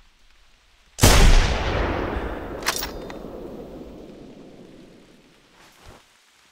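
A heavy rifle fires one loud shot that booms and echoes slowly away.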